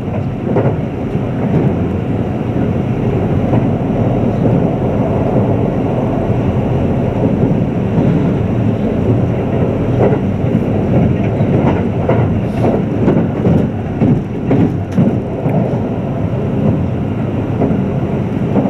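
An electric express train rumbles over the rails, heard from inside the carriage.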